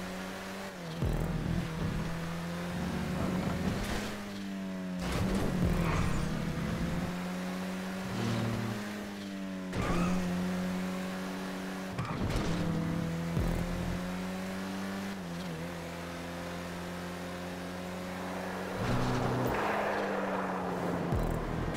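A car engine roars and revs up and down through the gears.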